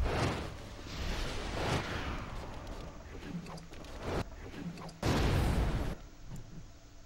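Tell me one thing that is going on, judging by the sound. Flames whoosh and crackle in short bursts.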